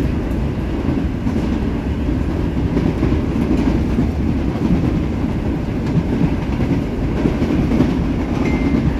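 A train rumbles steadily along the tracks, heard from inside a moving carriage.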